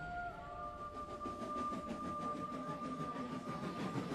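A model steam engine chugs along the rails.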